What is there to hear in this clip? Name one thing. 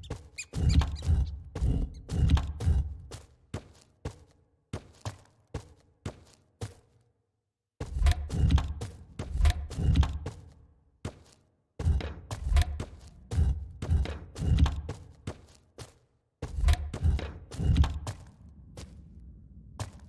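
Heavy footsteps thud steadily on stone in bursts, echoing in a corridor.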